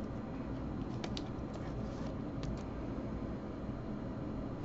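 Hands crinkle and tap a plastic card sleeve.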